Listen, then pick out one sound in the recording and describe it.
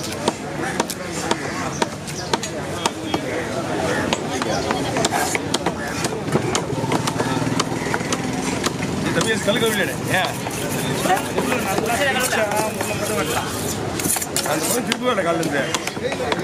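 A cleaver chops sharply on a wooden block again and again.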